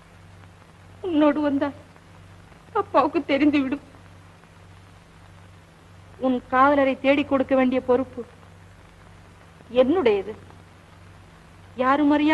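A young woman speaks in a tearful, pleading voice.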